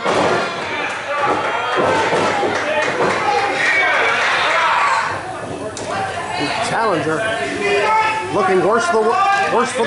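A crowd of spectators shouts and cheers in a large echoing hall.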